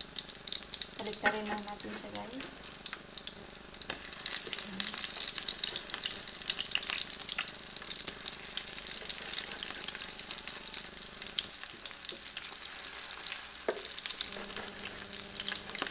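A wooden spatula scrapes and stirs food in a frying pan.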